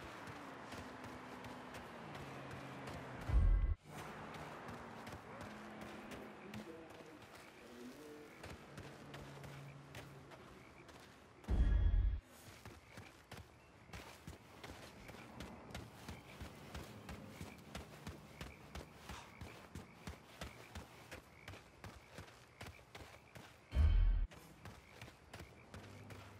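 Footsteps crunch softly on dirt and gravel.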